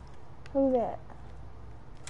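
A young woman exclaims briefly close to a microphone.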